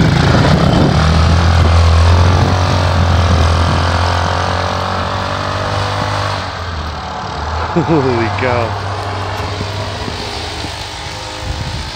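A quad bike engine revs and roars as the bike drives off through snow, fading into the distance.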